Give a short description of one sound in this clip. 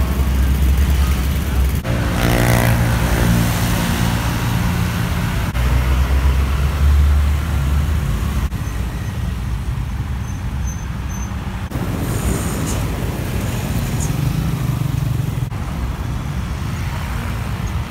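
Heavy traffic rumbles past on a road outdoors.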